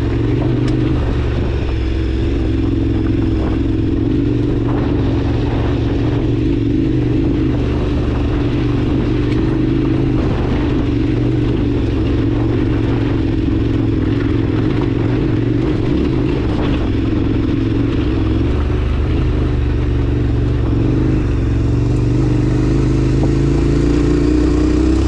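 Tyres crunch and rattle over loose gravel and stones.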